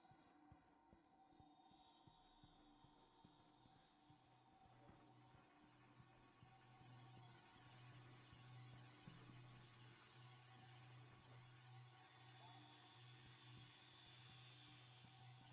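A low electric hum drones steadily.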